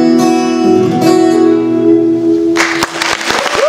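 An acoustic guitar rings out with a final chord and stops.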